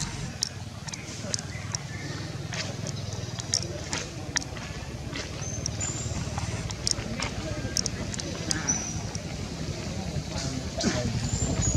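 A monkey chews on fruit with wet smacking sounds.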